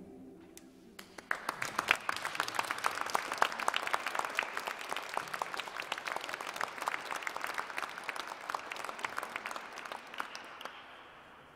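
A drummer taps a quick steady beat.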